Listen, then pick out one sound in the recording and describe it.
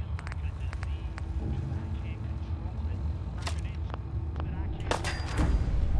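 Menu clicks tick softly.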